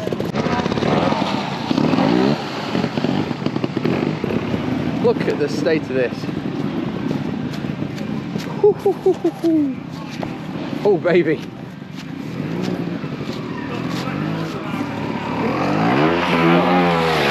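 A trials motorbike engine revs and splutters nearby.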